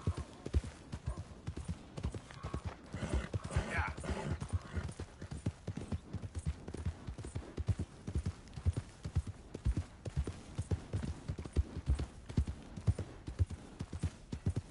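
Horse hooves thud rapidly on soft ground at a gallop.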